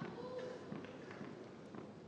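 A player bounces a ball on a hard court.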